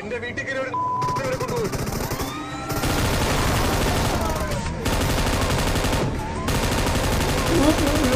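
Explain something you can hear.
Gunfire from a video game rattles.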